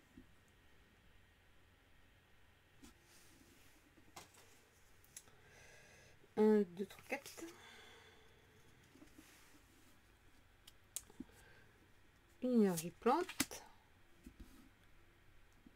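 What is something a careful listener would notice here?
Playing cards rustle and slide between fingers.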